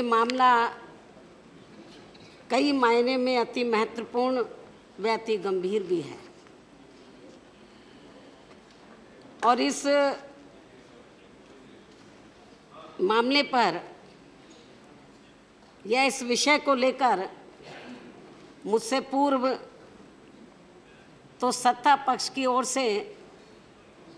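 A middle-aged woman speaks firmly into a microphone in short bursts with pauses.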